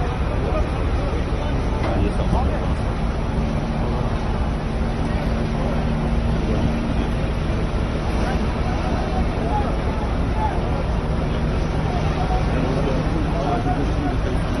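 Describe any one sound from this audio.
A crane engine rumbles steadily nearby.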